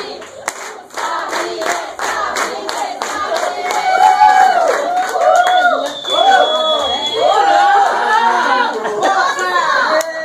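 Several women sing together loudly and cheerfully.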